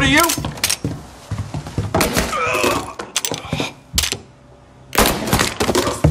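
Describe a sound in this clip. A pistol fires a few sharp shots indoors.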